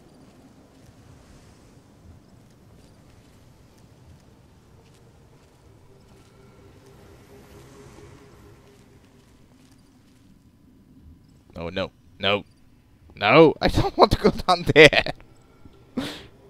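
Footsteps crunch softly on gravel.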